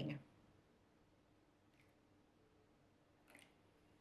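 Milk pours into a bowl.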